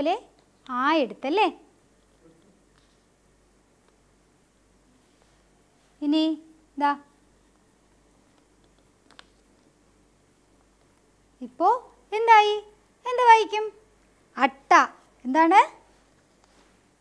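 A woman speaks slowly and clearly, as if teaching, through a microphone.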